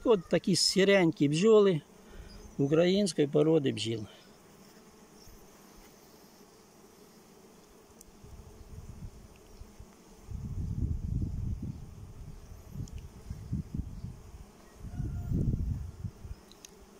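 Bees buzz close by.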